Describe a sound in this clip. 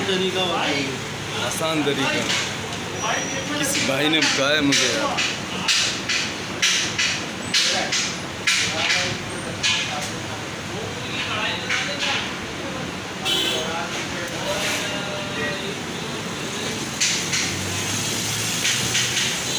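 A knife slices through raw meat with soft, wet scraping sounds.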